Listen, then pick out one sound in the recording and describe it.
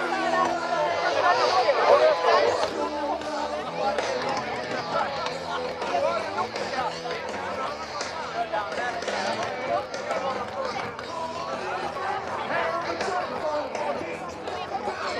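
A large crowd chatters and cheers outdoors.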